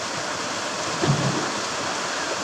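A person jumps and splashes into a pool.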